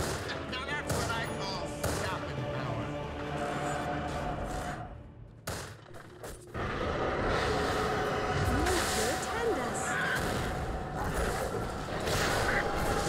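Magical blasts and impacts ring out in quick bursts.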